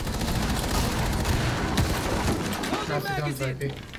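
Rifle shots fire in quick bursts.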